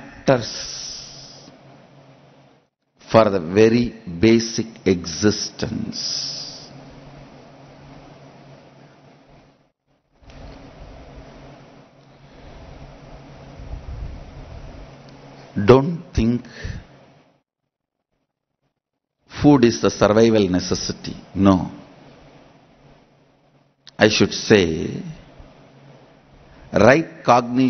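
A man speaks calmly into a microphone, with pauses between phrases.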